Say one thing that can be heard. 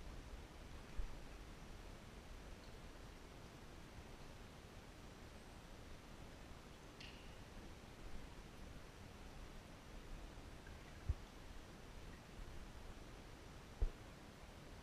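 A kayak paddle knocks against the hull with a hollow echo.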